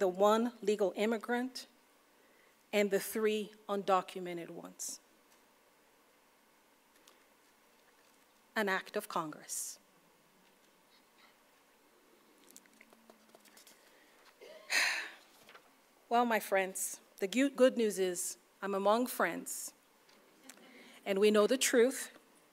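A woman speaks calmly into a microphone, with pauses between phrases.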